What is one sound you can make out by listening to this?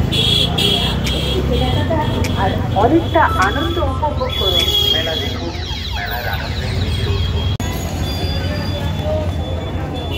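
A crowd of people chatters nearby on a busy street.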